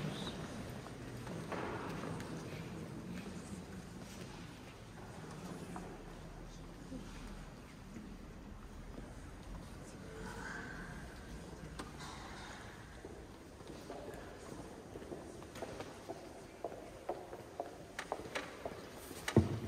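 A choir of men and women sings softly in a large echoing hall.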